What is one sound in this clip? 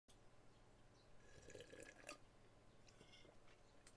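A man slurps a drink.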